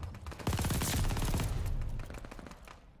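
A rifle fires rapid bursts of gunshots up close.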